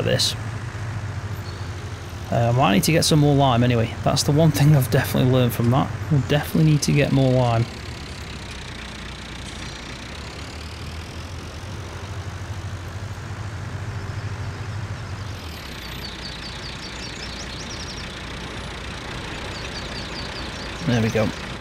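A tractor engine hums and rumbles steadily.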